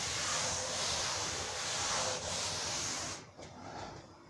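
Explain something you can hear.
A cloth rubs briskly across a board.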